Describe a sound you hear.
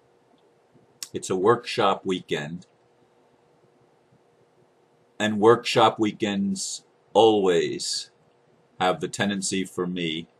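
A middle-aged man speaks calmly and slowly into a close microphone, with pauses between phrases.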